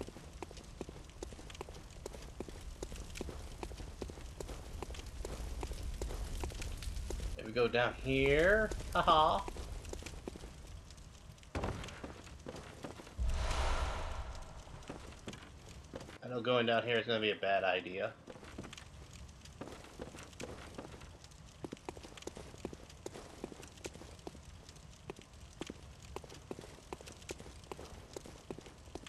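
Footsteps run quickly over stone and creaking wood.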